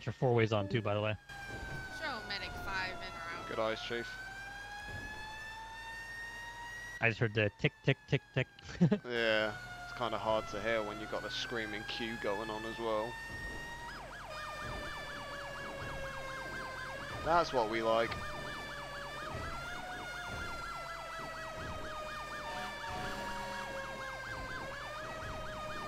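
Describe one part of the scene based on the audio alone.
A fire truck siren wails, rising and falling.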